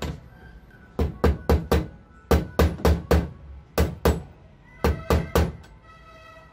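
A hammer taps sharply on a metal hasp.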